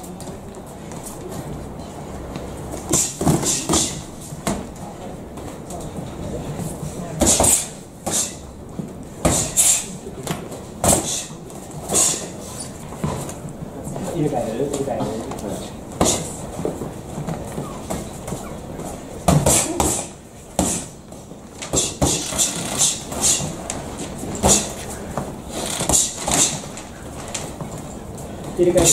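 Sneakers squeak and shuffle on a mat.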